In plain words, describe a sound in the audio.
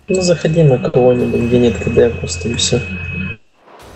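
Fiery spells whoosh and crackle.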